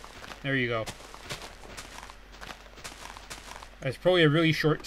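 A shovel digs into soft dirt with repeated scraping crunches.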